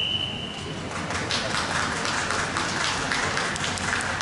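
A crowd of young people murmurs in a large echoing hall.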